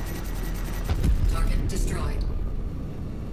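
A heavy blast booms and rumbles.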